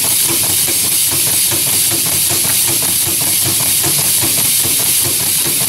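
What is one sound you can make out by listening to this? A small machine runs with a fast, steady rhythmic clatter.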